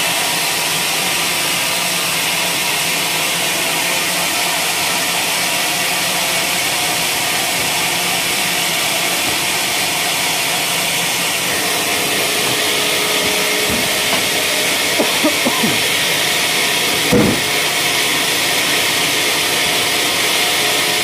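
A band saw whines steadily as it cuts through a log.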